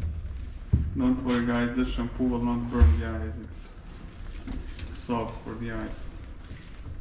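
A young woman talks softly nearby.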